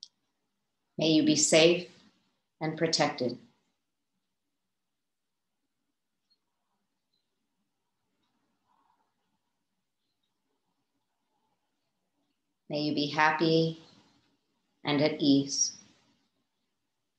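A woman speaks calmly and softly through a microphone in an online call, with long pauses.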